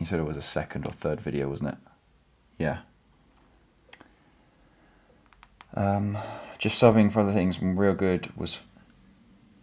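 A young man speaks calmly, close by, in short bursts with pauses.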